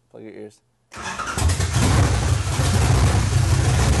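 A car engine starts and roars loudly.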